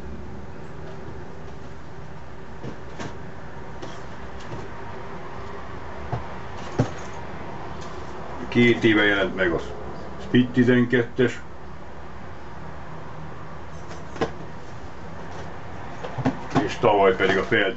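Cardboard boxes rustle and knock as an older man handles them.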